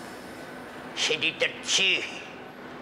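A man calls out loudly and emphatically.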